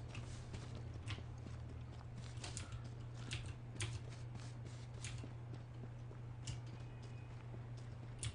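Footsteps rustle through grass and leaves.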